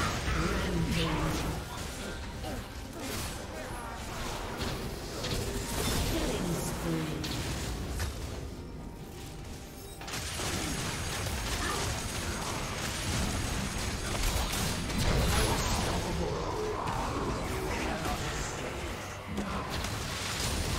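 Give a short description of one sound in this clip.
Fighting sound effects crash, zap and clang in a video game battle.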